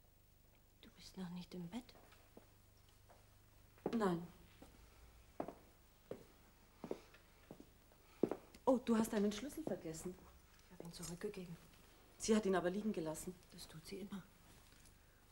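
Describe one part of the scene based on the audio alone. A woman speaks in measured, halting phrases.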